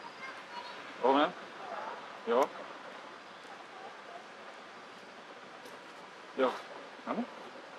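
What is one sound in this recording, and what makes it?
A monkey gives short, high squealing calls.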